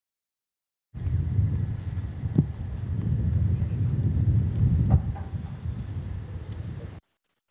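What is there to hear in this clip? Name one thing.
Wind blows outdoors in low, gusty rumbles.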